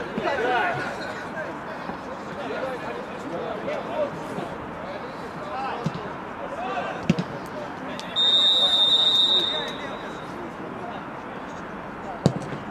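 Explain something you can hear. Men shout and call out across an open outdoor pitch.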